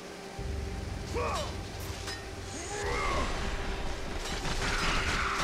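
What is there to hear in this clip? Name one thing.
Blades whoosh through the air in a fight.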